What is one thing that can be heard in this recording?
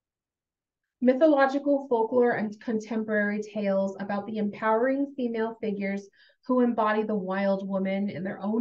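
A woman reads aloud calmly through a microphone.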